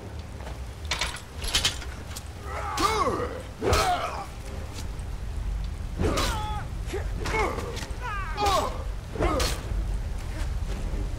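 Metal blades strike and clang sharply several times.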